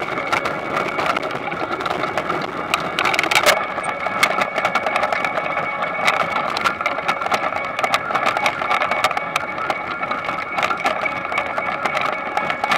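Potatoes knock and clatter as they roll over moving bars.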